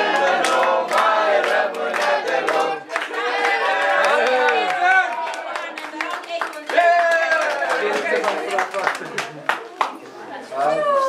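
Several people clap their hands.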